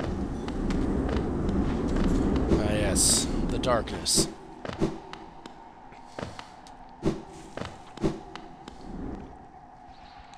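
Light footsteps patter quickly on a hard floor.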